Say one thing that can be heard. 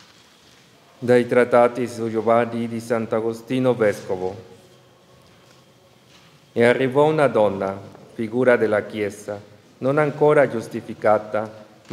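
A man chants loudly through a microphone in an echoing hall.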